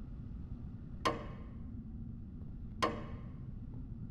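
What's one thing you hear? A metal gate clanks and rattles with a ringing echo.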